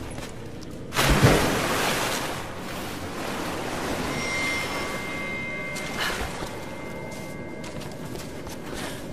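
Water swirls and sloshes around a swimmer.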